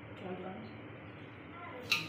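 Liquid pours into a metal pot.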